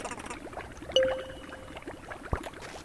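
A bright electronic chime rings for a found item.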